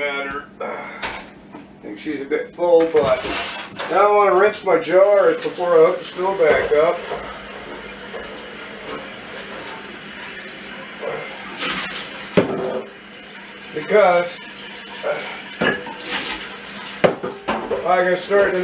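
Dishes and utensils clatter.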